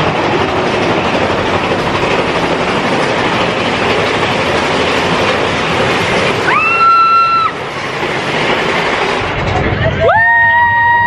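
A roller coaster rumbles and rattles along its track.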